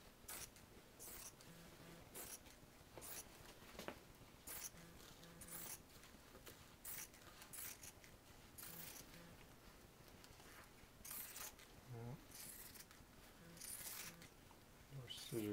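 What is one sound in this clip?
Scissors snip through thin plastic sheeting.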